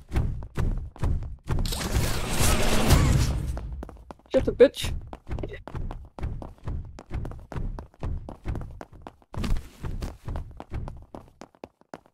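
Heavy boots thud in a steady walking rhythm.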